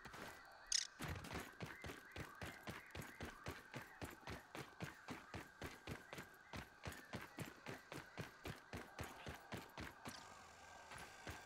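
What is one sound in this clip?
Footsteps rustle steadily through grass.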